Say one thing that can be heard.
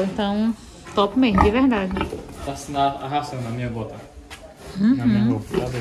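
A pig grunts close by.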